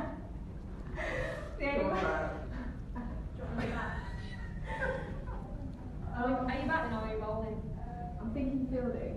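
Several young women talk and laugh excitedly nearby.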